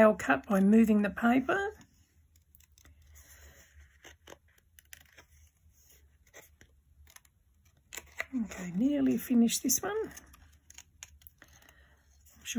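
Stiff paper rustles and crinkles as hands handle it.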